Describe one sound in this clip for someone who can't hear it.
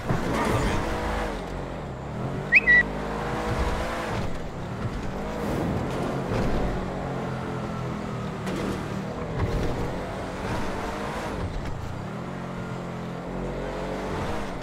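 Tyres hum on the road surface.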